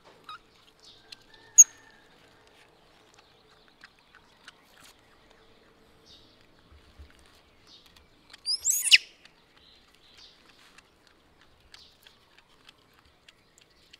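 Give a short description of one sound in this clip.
A knife scrapes and peels a root.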